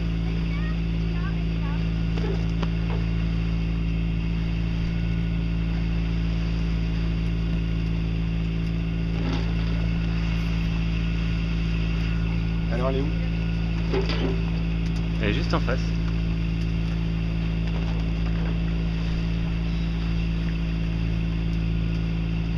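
Water washes steadily against a boat's hull.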